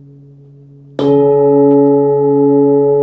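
A padded mallet strikes a metal singing bowl, which rings out loud and bright.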